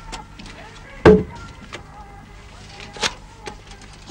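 A metal door latch clanks and rattles.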